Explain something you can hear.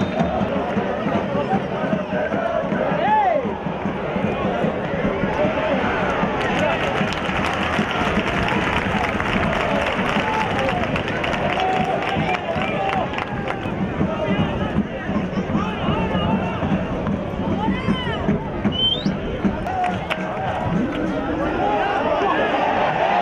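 A large crowd cheers and chatters in an outdoor stadium.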